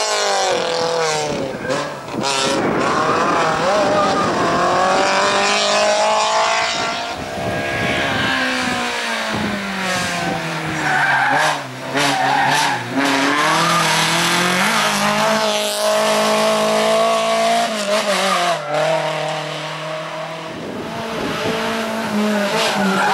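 A rally car engine revs hard, rising and falling as the car speeds past.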